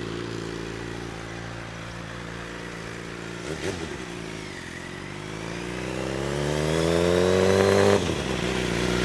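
A motorcycle engine hums in the distance, then revs up as the motorcycle approaches.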